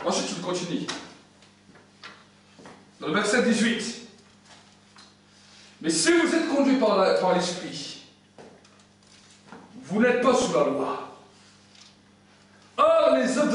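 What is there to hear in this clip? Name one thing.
A man speaks in short bursts with pauses, in a room with some echo.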